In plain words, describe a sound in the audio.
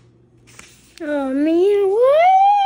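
A young child close by makes a loud, rising, whining cry.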